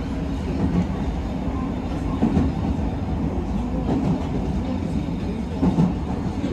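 A car engine and tyres rumble steadily along a road.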